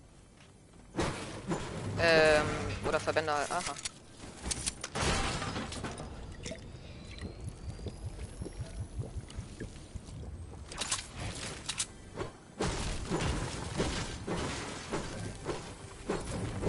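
A pickaxe strikes and smashes objects with sharp hits.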